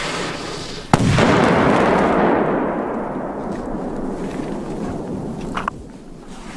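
Firework sparks crackle and fizz after the bang.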